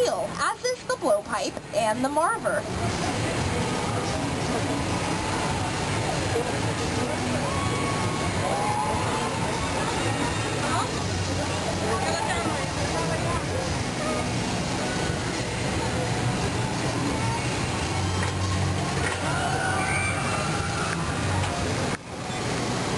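A glass furnace roars steadily.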